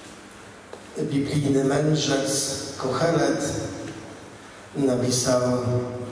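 A middle-aged man speaks warmly through a microphone.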